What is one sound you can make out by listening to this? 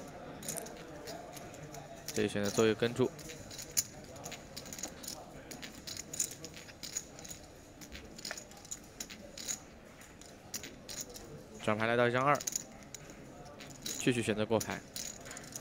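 Poker chips click together.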